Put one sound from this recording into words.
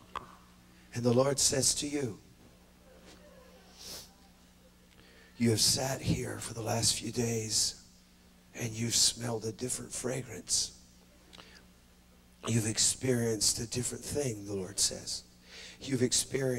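A man speaks loudly and with animation through a microphone in a large echoing hall.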